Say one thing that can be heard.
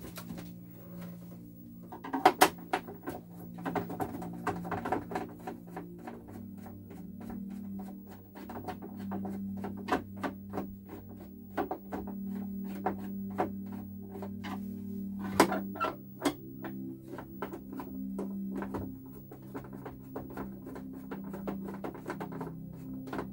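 A screwdriver clicks and scrapes against a plastic casing.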